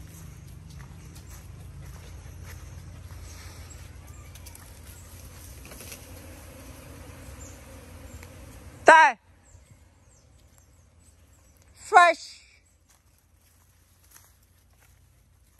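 Dogs run and rustle through dry leaves and grass.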